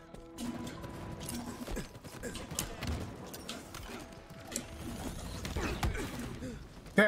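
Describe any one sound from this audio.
Rapid gunshots crack in a video game.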